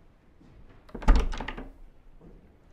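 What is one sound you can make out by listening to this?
A locked door handle rattles and clunks.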